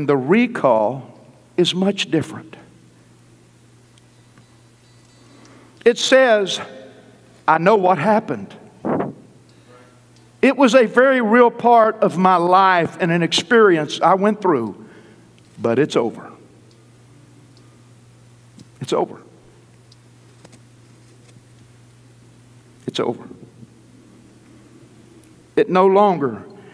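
A middle-aged man preaches with animation through a microphone, in bursts with pauses.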